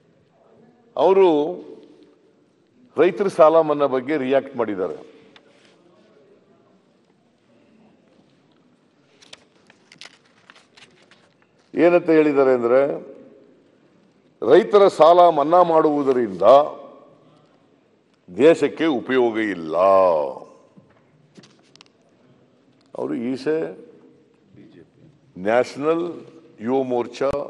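An elderly man speaks into a microphone in bursts, with long pauses between phrases.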